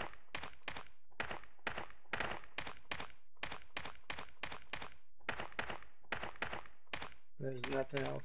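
Footsteps tap steadily on a stone floor.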